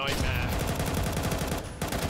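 Rifle shots fire in a rapid burst.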